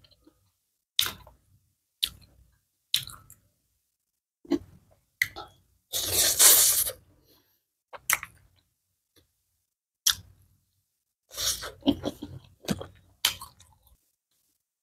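A young woman chews crunchy food loudly, close to a microphone.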